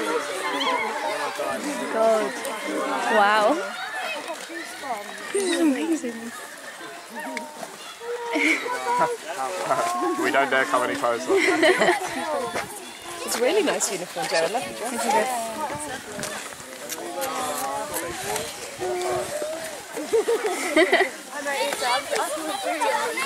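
A crowd of children chatter and call out nearby outdoors.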